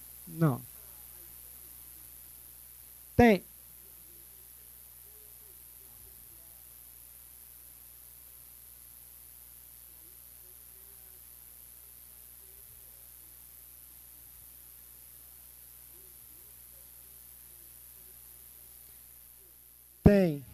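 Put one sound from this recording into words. A man speaks quietly and far off.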